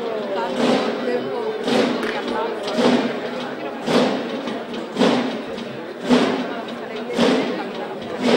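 A crowd of men and women murmurs and chatters outdoors nearby.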